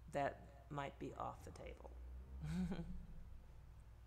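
A woman speaks calmly and expressively into a close microphone.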